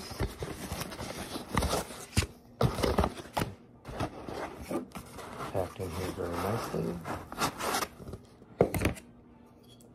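Cardboard packaging rustles and crinkles as it is torn open.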